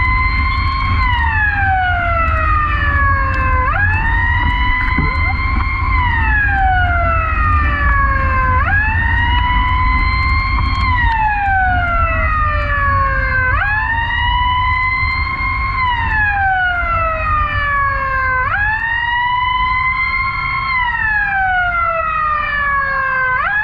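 A car engine rumbles low and steady while driving.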